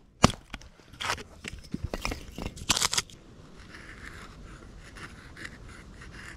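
A knife shaves and scrapes wood.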